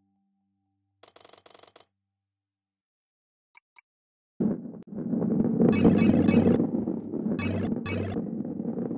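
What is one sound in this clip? Coins jingle in quick bursts as they are collected.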